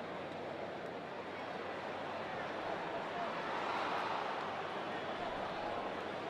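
A large crowd murmurs and chatters in a big hall.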